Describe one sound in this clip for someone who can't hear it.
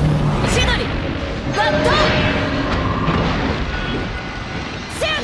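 Sword slashes and impacts crash rapidly in a game battle.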